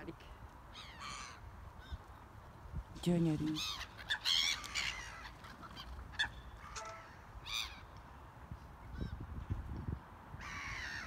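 Gulls cry loudly overhead, over and over.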